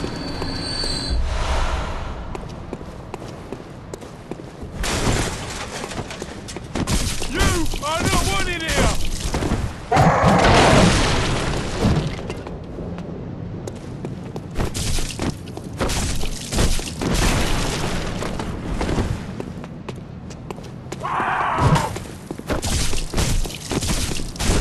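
Footsteps run across stone cobbles.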